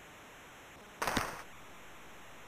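A hockey stick smacks a puck.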